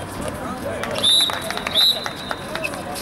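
A referee's whistle blows two short blasts.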